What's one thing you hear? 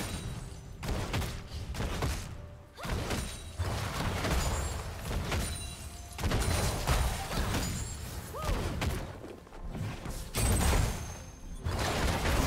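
Magic blasts and weapon strikes crackle and burst during a video game battle.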